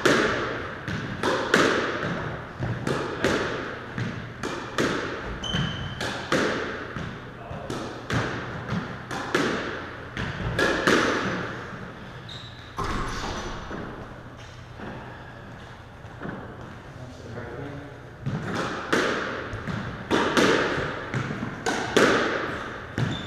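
A squash ball smacks hard against the walls, ringing in an echoing court.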